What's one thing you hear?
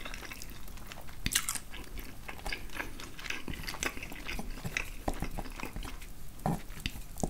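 Soft wet noodles squish and slide off a fork, heard up close.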